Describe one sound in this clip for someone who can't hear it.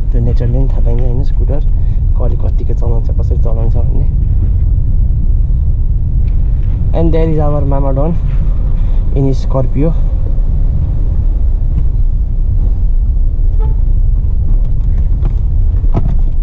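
A car engine hums steadily with road rumble while driving.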